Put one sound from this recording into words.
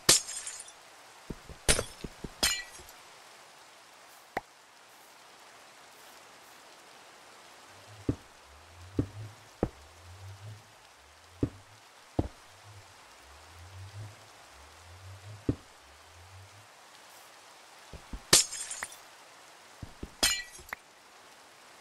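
Glass panes shatter with sharp crashes.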